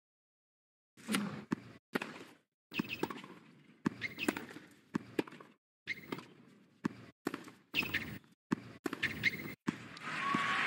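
A tennis ball is struck back and forth with sharp pops and thuds on the court.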